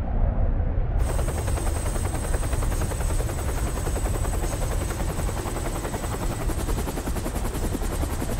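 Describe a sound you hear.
Helicopter rotors chop loudly and rapidly.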